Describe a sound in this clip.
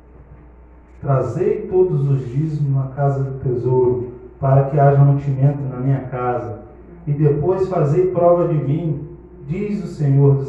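A man speaks into a microphone through loudspeakers, slowly and earnestly, as if praying.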